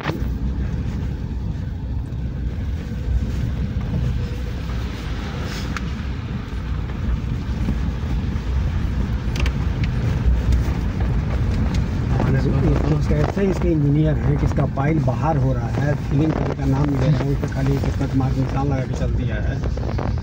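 A vehicle's engine rumbles low and steady as it drives over a rough dirt road.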